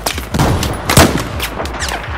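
A rifle fires a single loud, echoing shot.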